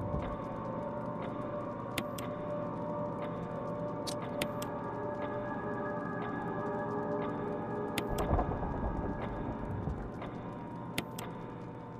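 A clock ticks steadily.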